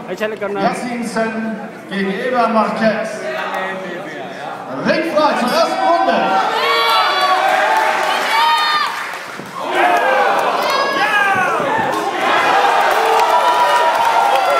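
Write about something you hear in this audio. A crowd of spectators shouts and cheers loudly nearby.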